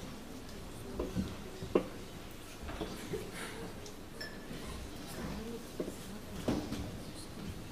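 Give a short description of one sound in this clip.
Performers knock and shuffle equipment on a small stage.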